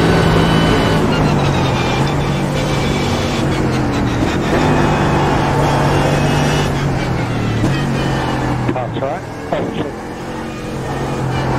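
A racing car engine drops in pitch as the car slows hard for a corner.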